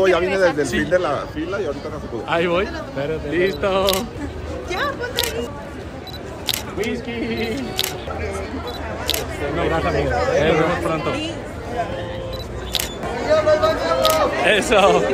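A crowd chatters outdoors on a busy street.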